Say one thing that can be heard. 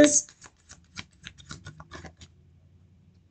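Paper cards flick and shuffle in a woman's hands.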